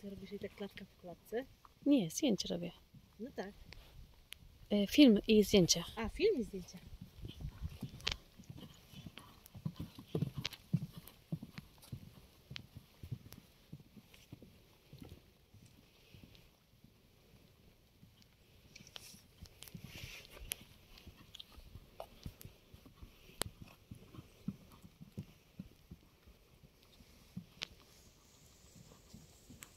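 A horse canters over soft ground with rhythmic, muffled hoof thuds.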